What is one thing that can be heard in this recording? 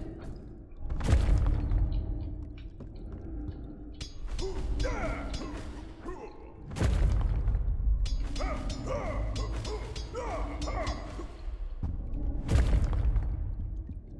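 Heavy slams boom and rumble.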